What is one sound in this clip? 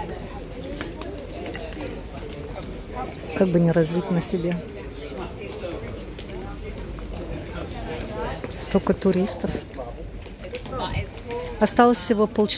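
A crowd of people murmurs in the background outdoors.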